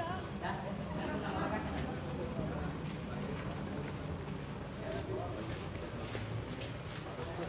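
A crowd of boys and young men chatter nearby.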